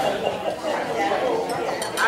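A knife and fork scrape on a plate.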